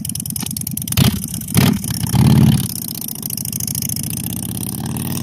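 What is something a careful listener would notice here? A motorcycle engine idles with a loud, lumpy rumble.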